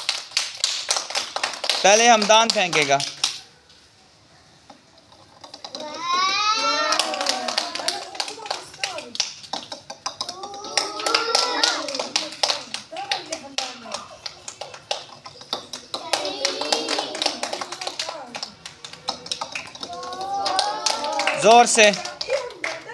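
Children clap their hands rapidly.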